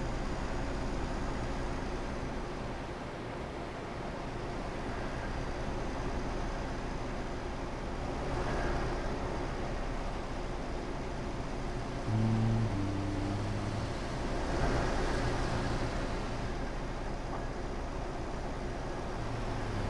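A truck engine hums steadily as it drives along a highway.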